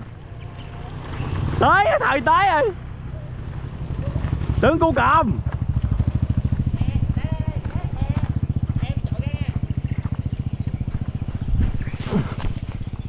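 A motorbike engine hums as it rides past.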